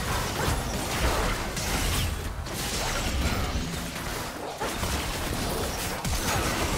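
Spell effects crackle and burst in a fast game battle.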